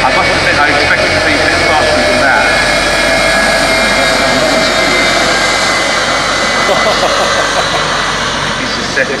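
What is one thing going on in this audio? A jet-powered bus roars loudly along a track.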